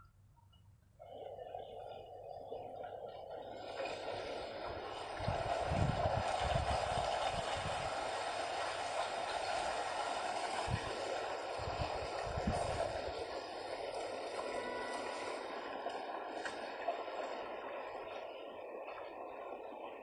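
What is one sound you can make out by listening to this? Muddy water rushes steadily over rocks nearby.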